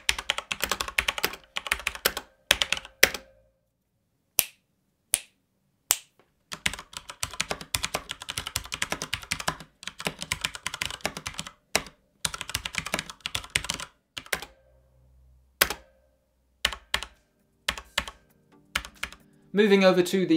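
Keys clatter rapidly as someone types on a mechanical keyboard.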